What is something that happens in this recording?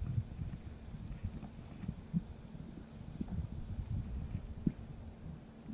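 A spinning reel is cranked, winding in fishing line.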